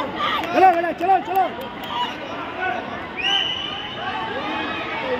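A crowd cheers and shouts in the distance.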